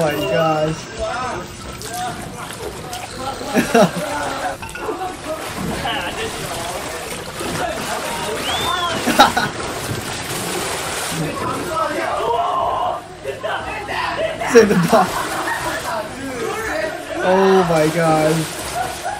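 Young men chatter and laugh excitedly through a playback.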